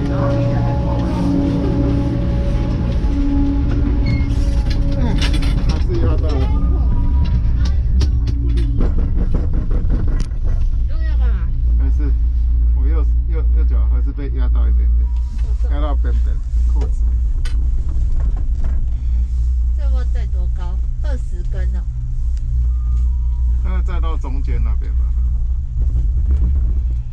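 A snowmobile engine rumbles steadily close by.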